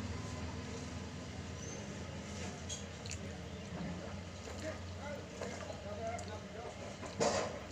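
A spoon scrapes and clinks against a bowl.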